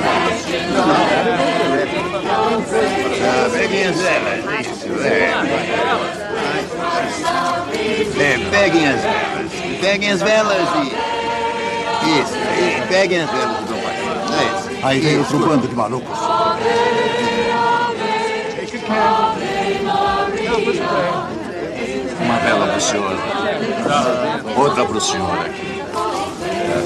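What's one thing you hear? A crowd of men and women murmurs and chatters outdoors.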